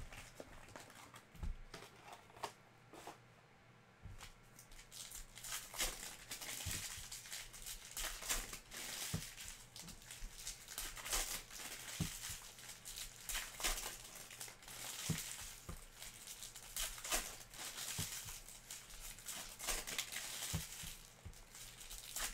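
Trading cards slide and tap against each other as they are handled.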